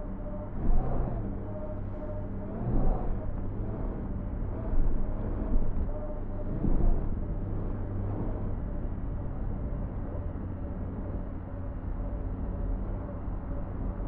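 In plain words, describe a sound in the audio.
Water splashes around a moving vehicle.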